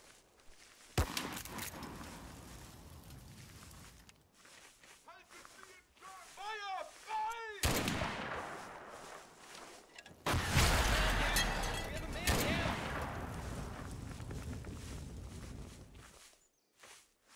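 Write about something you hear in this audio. Explosions boom loudly, each followed by a long rumbling roar.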